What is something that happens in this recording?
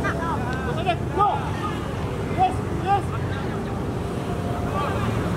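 A crowd chatters from nearby stands.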